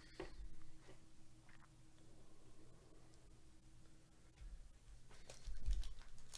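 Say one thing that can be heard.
Cards and wrappers rustle as hands handle them.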